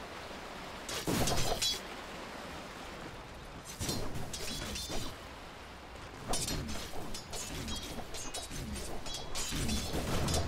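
Magic blasts and weapon hits crackle in a fight.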